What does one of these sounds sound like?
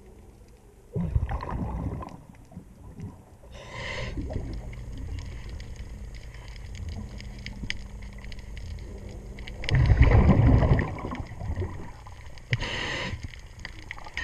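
A diver breathes out through a regulator underwater in loud, bubbling bursts.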